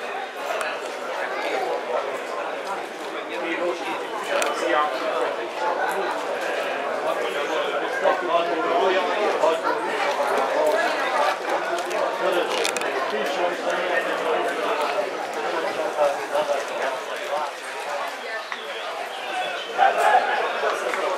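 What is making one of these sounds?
A crowd of men chatter and call out nearby outdoors.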